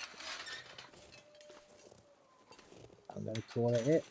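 A metal gate creaks as it swings open.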